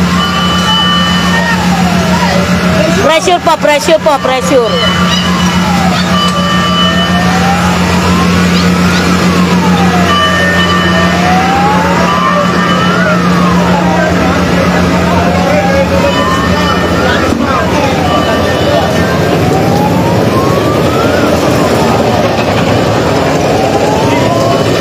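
A siren wails up and down steadily nearby.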